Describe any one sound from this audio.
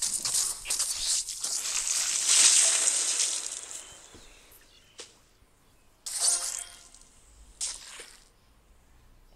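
Game blades whoosh and slice fruit with juicy splats.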